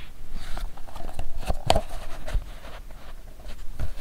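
An elastic strap snaps against leather.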